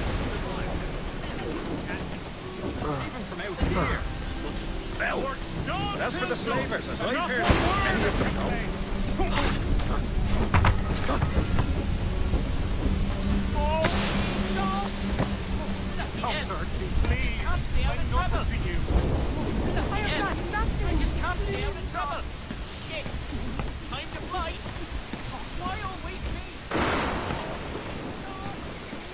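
Heavy rain pours steadily outdoors.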